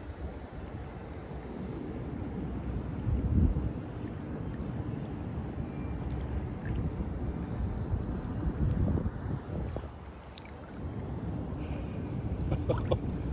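Gentle water laps and sloshes close by.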